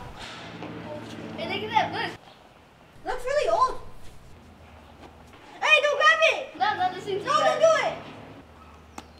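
A young girl talks nearby.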